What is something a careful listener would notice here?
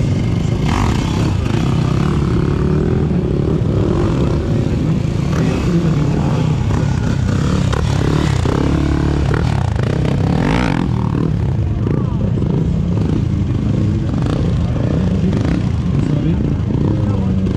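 A motorcycle engine roars and revs loudly nearby.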